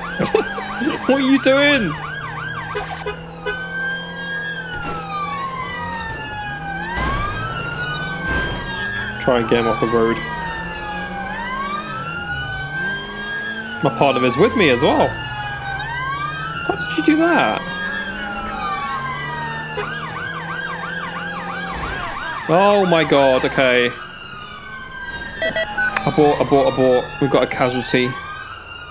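A police siren wails, rising and falling over and over.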